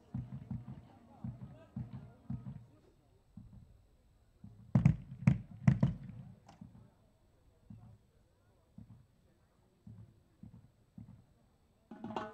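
A marching band's drums beat in a steady rhythm outdoors.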